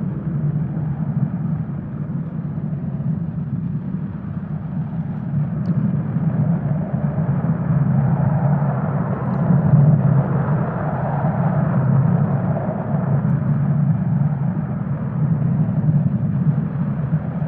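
A glass ball rolls with a low rumble across wooden planks.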